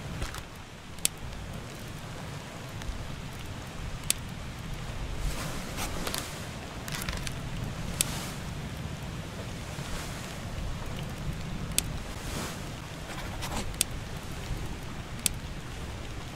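Short, sharp clicks sound now and then as menu choices are picked.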